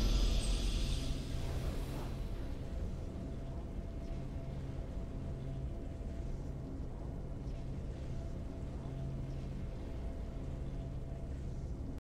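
A game victory tune plays softly.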